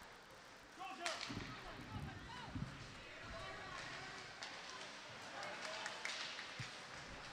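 A crowd of spectators shouts and cheers in an echoing arena.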